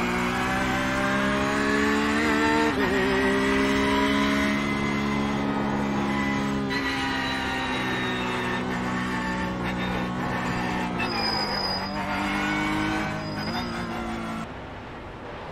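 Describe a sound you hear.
A racing car engine roars steadily, its pitch rising and falling with gear changes.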